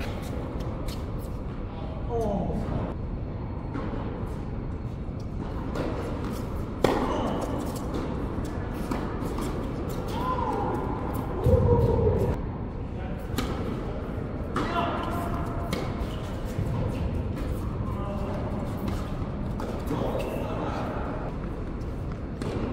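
Tennis balls are struck with rackets, echoing in a large hall.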